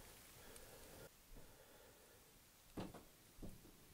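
Paint drips from a dropper bottle into a plastic cup.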